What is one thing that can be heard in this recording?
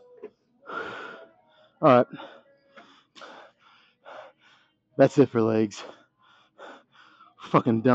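A man talks casually up close, with animated bursts.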